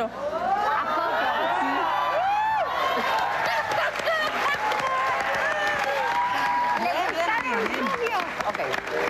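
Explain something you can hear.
An audience whoops and cheers.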